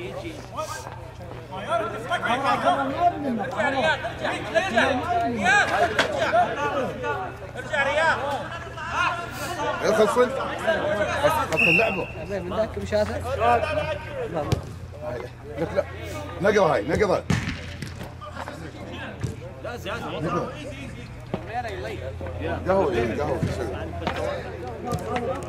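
Nearby male spectators talk and cheer.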